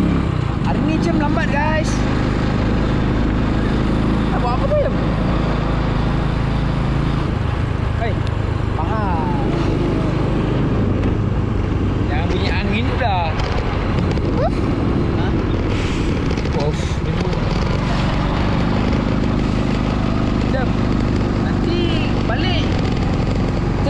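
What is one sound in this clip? A scooter engine hums steadily.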